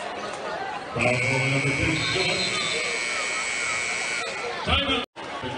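A loud buzzer sounds steadily and then stops.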